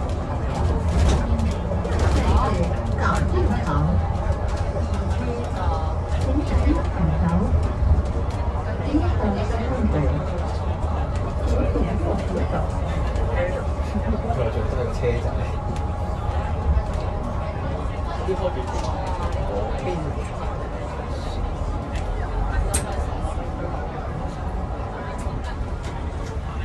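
A bus engine hums and rumbles low and steady while driving.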